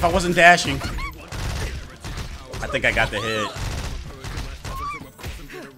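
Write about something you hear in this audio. Punches and kicks land with rapid smacks.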